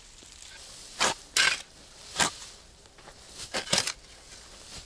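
A pick chops into the earth.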